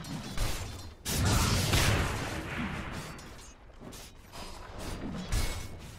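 Magic spells burst and weapons clash in a fantasy battle.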